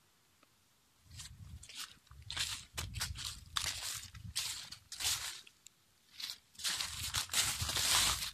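Footsteps rustle and crunch through dry leaves and grass.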